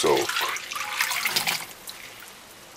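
A hand swishes soaked beans around in water.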